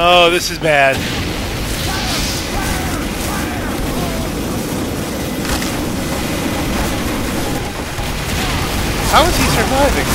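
A flamethrower roars in steady bursts.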